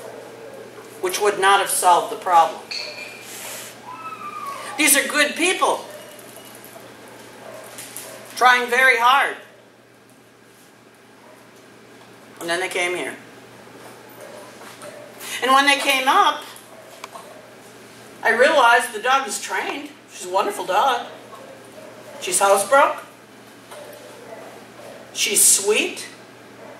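An elderly woman talks calmly in short bursts in a large echoing room.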